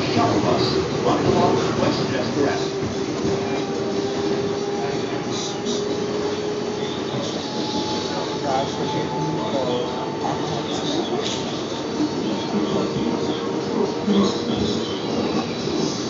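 A subway train rumbles and rattles steadily along the tracks.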